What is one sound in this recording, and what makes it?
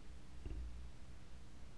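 A finger presses a button on a record player with a soft click.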